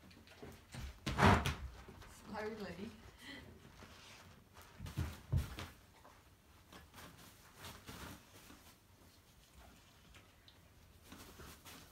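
A dog's paws thump and scrape on soft exercise cushions.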